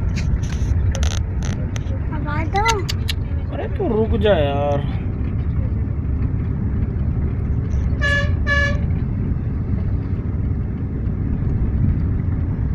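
A vehicle engine rumbles steadily while driving.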